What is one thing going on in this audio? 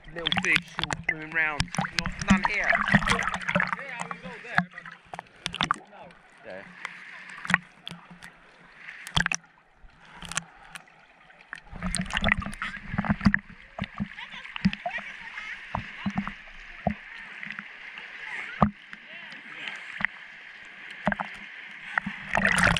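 Seawater sloshes and gurgles close by, dipping between underwater and the surface.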